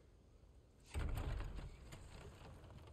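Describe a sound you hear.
A heavy wooden gate creaks and thuds as it is pushed.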